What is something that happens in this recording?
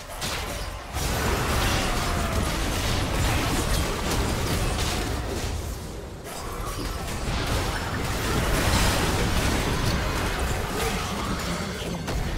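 Magic spells crackle and burst in a loud game battle.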